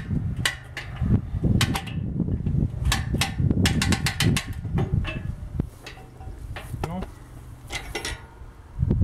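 Metal parts clink and clank.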